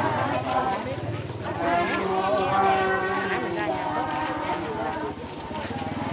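A crowd of men and women talk and murmur close by.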